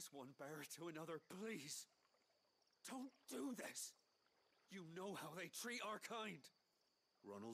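A young man pleads anxiously.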